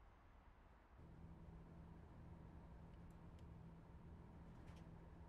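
A train engine hums low and steady.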